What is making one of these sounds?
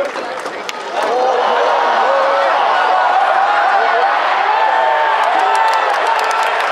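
A large crowd cheers loudly.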